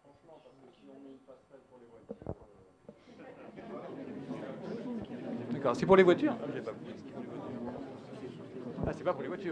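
A man speaks calmly to an audience in a large hall.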